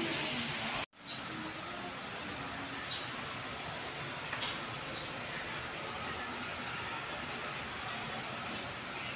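People murmur quietly in a large room.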